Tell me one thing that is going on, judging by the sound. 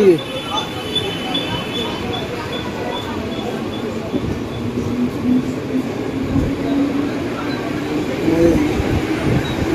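A crowd murmurs and chatters in a busy open space.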